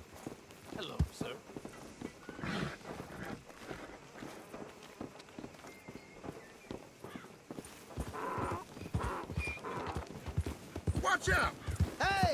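Wooden crates knock as men carry them.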